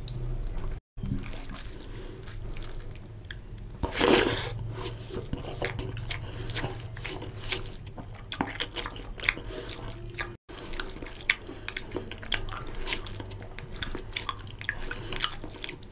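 A man chews food loudly and wetly, close to a microphone.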